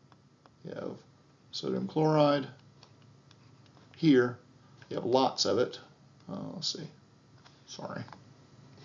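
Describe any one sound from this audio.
A middle-aged man speaks calmly and clearly into a close microphone, in short phrases with pauses.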